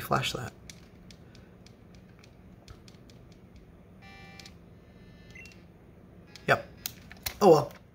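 Plastic buttons click softly on a handheld game console.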